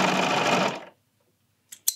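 A sewing machine whirs quickly, then stops.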